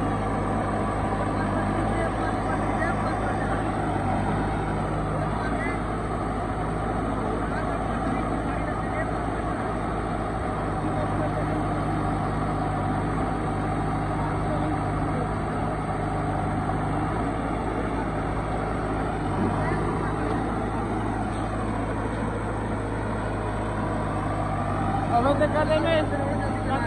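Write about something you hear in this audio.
A backhoe loader's diesel engine rumbles nearby.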